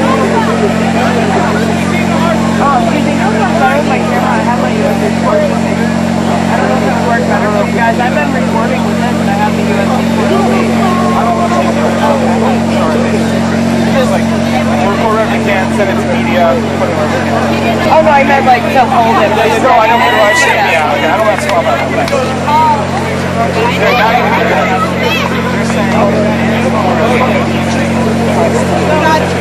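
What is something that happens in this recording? A crowd of people talks and shouts all around outdoors.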